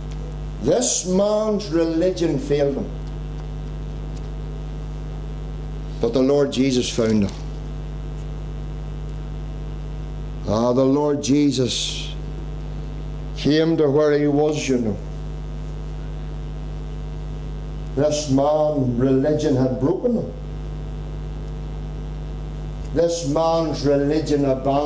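A middle-aged man speaks through a microphone in short bursts with pauses.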